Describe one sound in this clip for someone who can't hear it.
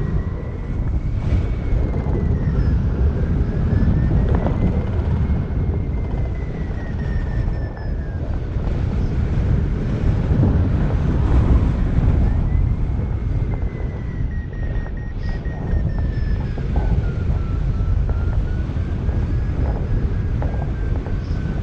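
A flight instrument beeps with a tone that slowly rises and falls in pitch.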